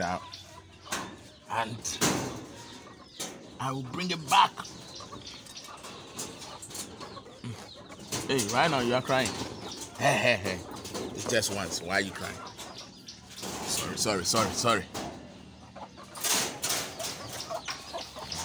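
A wire cage rattles and clinks as a hand reaches in.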